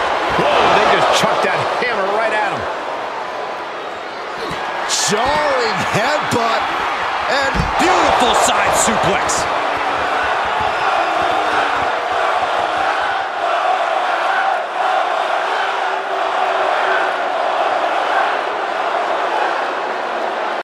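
A large crowd cheers and roars, echoing in a big arena.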